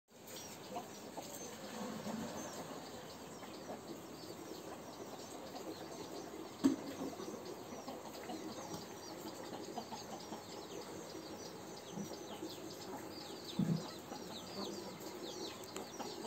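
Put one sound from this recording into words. A rooster's beak taps and pecks against a metal dish.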